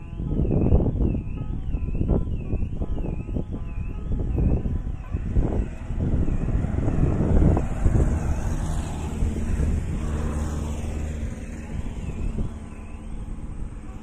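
A car alarm wails with a rising and falling tone.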